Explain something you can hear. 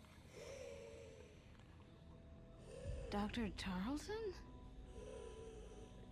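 A young woman speaks anxiously.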